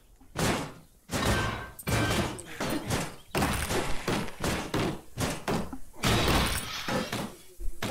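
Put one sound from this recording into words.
Blows land sharply in a scuffle.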